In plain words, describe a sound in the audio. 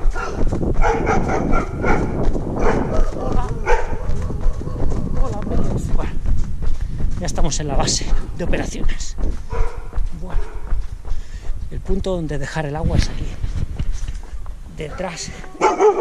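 Footsteps walk along a pavement.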